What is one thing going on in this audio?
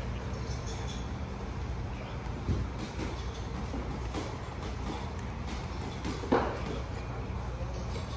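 Shoes thud softly on a bench.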